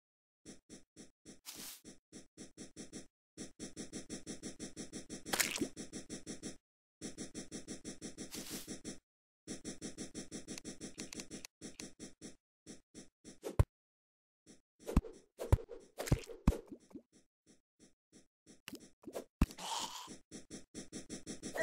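A pickaxe chips at rock in quick, rhythmic ticks.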